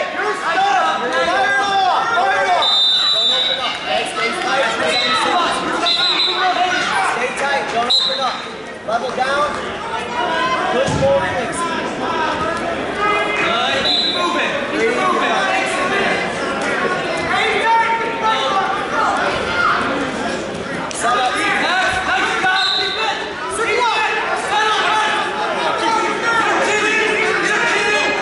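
A crowd of spectators shouts and cheers throughout a large echoing gym.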